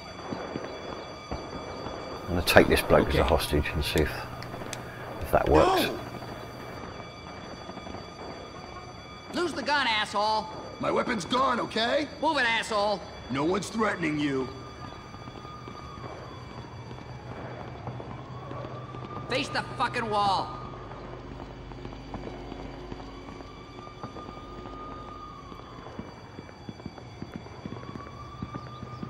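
Footsteps tread on pavement.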